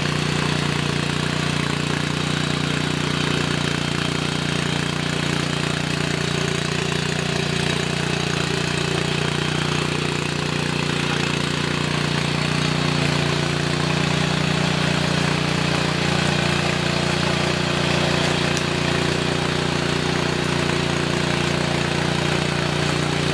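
A small petrol engine on a rotary tiller runs under load.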